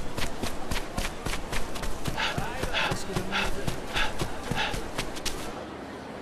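Quick footsteps run on packed earth and stone.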